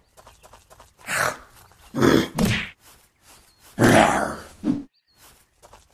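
Heavy blows thud against a zombie.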